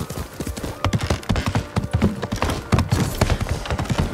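Hooves thud on wooden planks.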